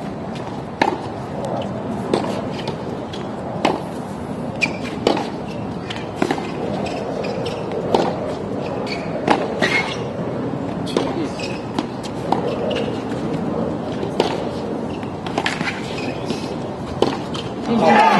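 A tennis ball is struck hard by a racket, again and again.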